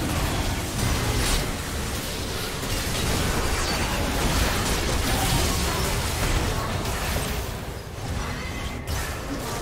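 Game spell effects burst and clash in a busy fight.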